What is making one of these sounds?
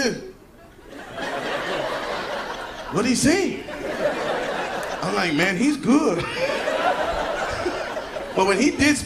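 An audience laughs loudly in a large hall.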